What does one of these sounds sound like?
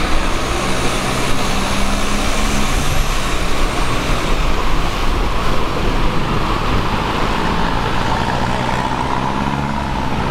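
The engine of a long-tail boat drones as the boat moves along the water.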